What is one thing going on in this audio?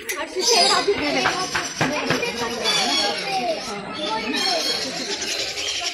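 Parrots squawk and chirp close by.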